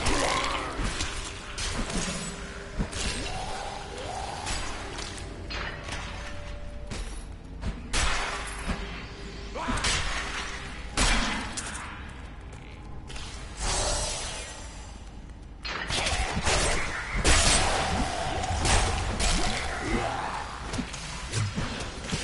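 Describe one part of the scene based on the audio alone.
Weapons clash and magic blasts burst in quick bursts.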